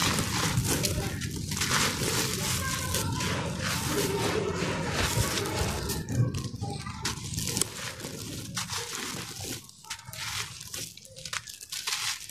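Dry crumbly dirt crunches and crumbles between hands up close.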